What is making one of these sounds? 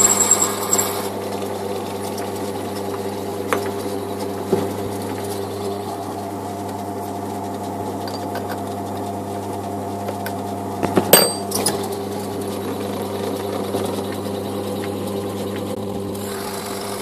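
A metal cutting tool scrapes against a spinning workpiece.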